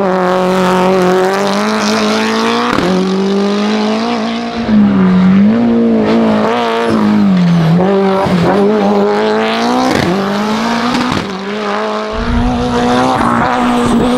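A race car engine roars loudly, rising and dropping in pitch as it shifts gears.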